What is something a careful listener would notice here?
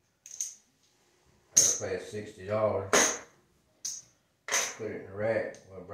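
Casino chips clink as they are placed on a felt table.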